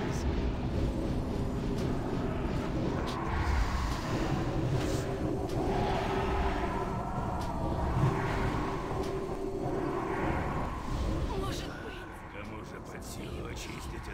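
Magic spells whoosh and crackle amid a busy battle.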